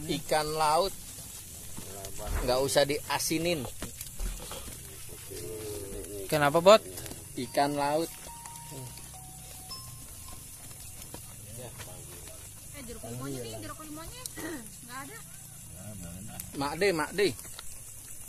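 Fish sizzles over glowing charcoal.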